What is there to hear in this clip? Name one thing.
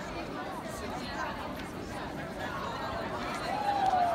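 Many footsteps shuffle on cobblestones.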